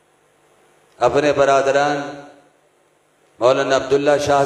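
A man chants melodiously into a microphone over loudspeakers, in bursts with pauses.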